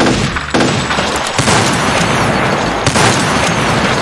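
A rocket explodes with a loud boom.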